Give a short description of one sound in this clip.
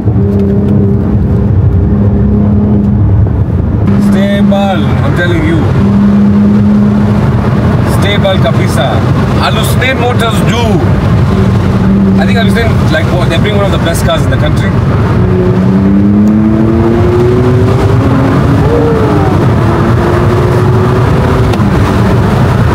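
A car engine drones steadily and rises in pitch as it speeds up.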